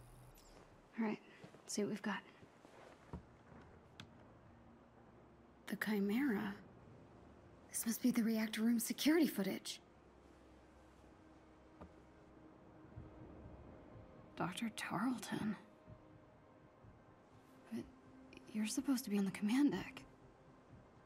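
A young woman speaks with animation, close up.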